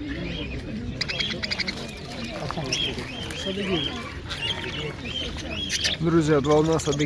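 Many small parakeets chirp and twitter busily.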